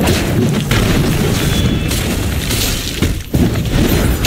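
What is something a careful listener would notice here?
Stone slabs crash and shatter.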